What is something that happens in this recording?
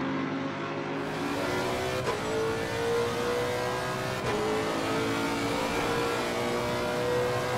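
A car engine revs hard and shifts up through the gears.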